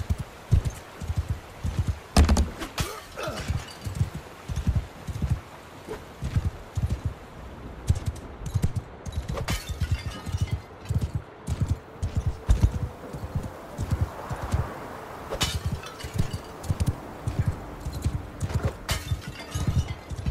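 Horse hooves gallop steadily on a dirt track.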